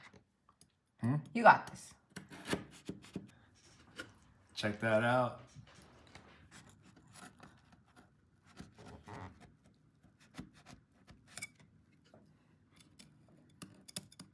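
A knife cuts through a crumbly cookie with soft crunches.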